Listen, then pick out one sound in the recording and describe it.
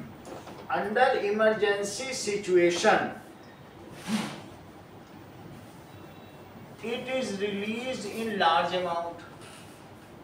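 A man speaks calmly in short phrases.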